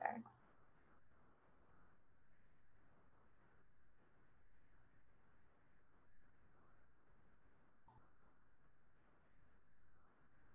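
A woman speaks softly and close to a microphone.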